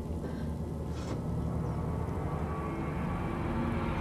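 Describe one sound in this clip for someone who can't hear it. Objects clink as a woman rummages in a low cupboard.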